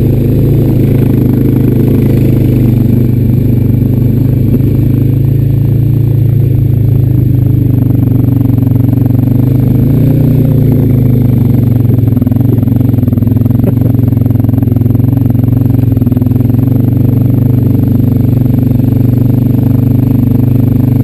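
An all-terrain vehicle engine drones loudly and steadily, rising and falling slightly as it turns.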